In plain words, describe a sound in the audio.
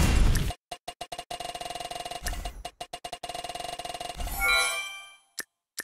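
A prize wheel ticks rapidly as it spins.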